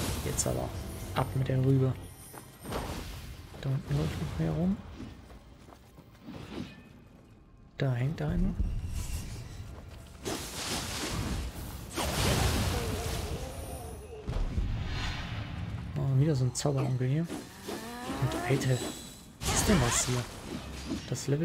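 Blades swing and strike with sharp metallic hits.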